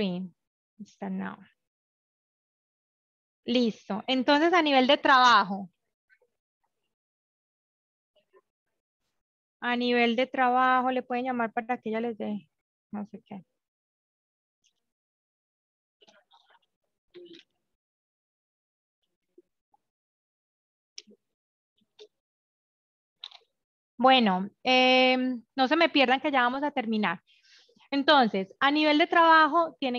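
A woman speaks calmly over an online call, in bursts with pauses.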